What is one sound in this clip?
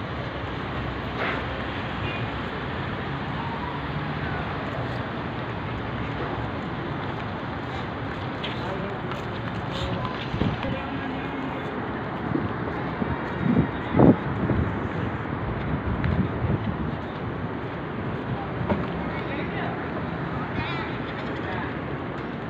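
People talk in a murmur outdoors.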